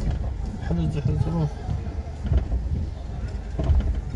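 A car engine hums at low speed nearby.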